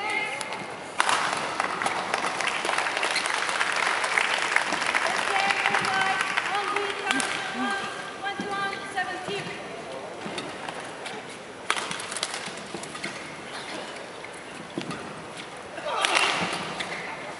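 A shuttlecock is struck hard by rackets in a rally.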